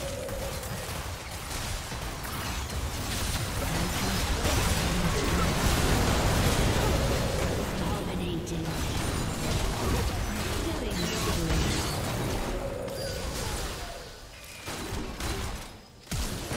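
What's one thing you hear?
Magic spell effects crackle, whoosh and boom in a busy battle.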